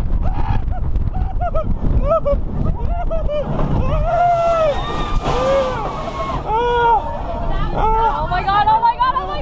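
Young women scream and laugh loudly up close.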